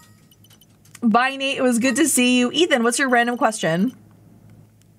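A young woman speaks in a high, animated voice close to a microphone.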